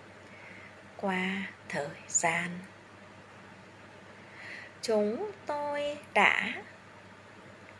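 A middle-aged woman speaks slowly and calmly, close by, in short phrases with pauses.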